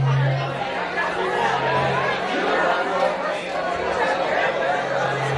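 A live band plays rock music loudly in a hall.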